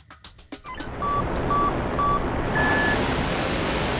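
A countdown beeps three times, then gives a higher starting beep.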